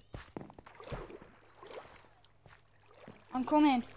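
Water trickles and flows nearby.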